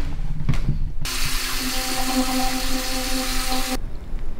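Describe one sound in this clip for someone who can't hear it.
An electric toothbrush buzzes steadily close by.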